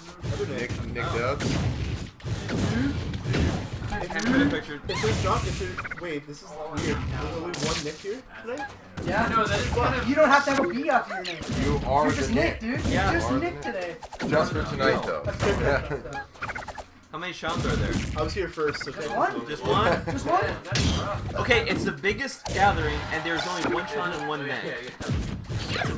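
Punches and hits from a video game pop and smack.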